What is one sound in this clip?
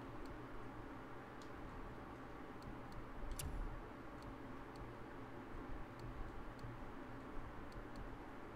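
Game menu clicks sound as options are selected.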